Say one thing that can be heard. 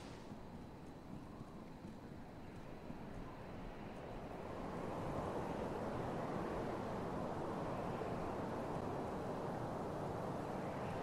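Wind rushes steadily and grows louder.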